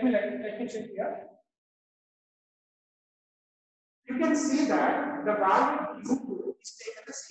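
A middle-aged man explains with animation, close to a microphone.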